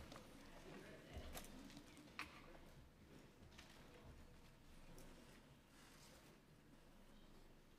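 Many people murmur quietly in a large echoing hall.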